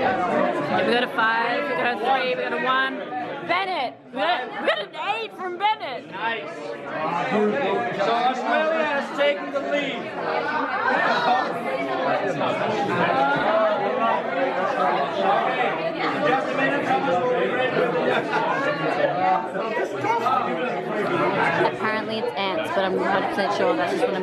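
A crowd of young men and women chatters and laughs loudly close by, indoors.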